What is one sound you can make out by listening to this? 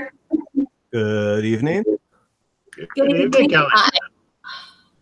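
An elderly woman speaks over an online call.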